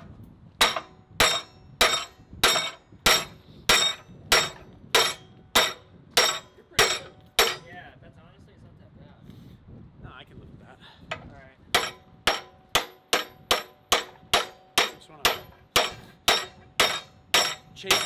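A hammer strikes metal with steady, ringing blows.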